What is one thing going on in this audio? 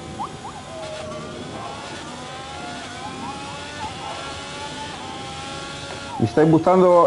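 A racing car engine revs up through the gears.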